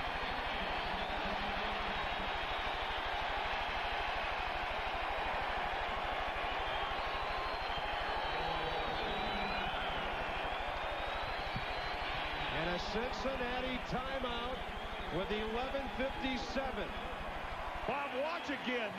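A large crowd cheers and roars loudly in a big echoing arena.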